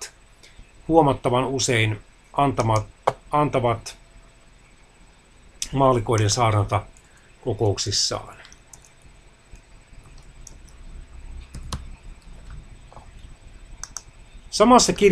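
A man speaks calmly, close to a microphone, in short bursts with pauses.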